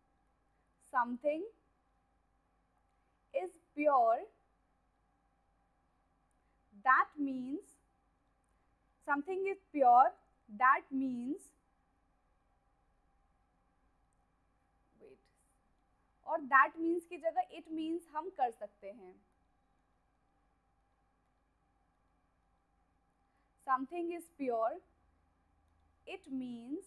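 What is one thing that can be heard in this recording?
A young woman speaks calmly and clearly into a close microphone, in short phrases with pauses.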